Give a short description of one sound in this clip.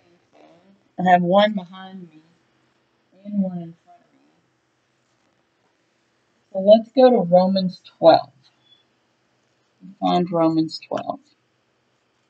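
An older woman speaks calmly, close to a microphone, in short bursts.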